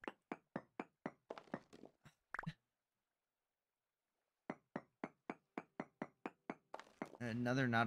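A pickaxe chips at stone in quick, even blows.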